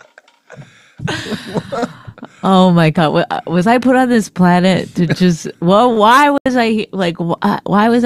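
A woman speaks into a close microphone with animation.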